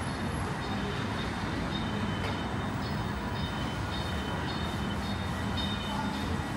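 Street traffic hums in the background outdoors.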